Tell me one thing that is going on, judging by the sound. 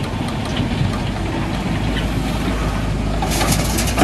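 Rocks clatter into a truck's dump bed.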